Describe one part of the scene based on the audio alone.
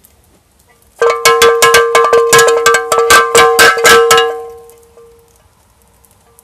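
A cowbell clangs rapidly, then rings out and fades.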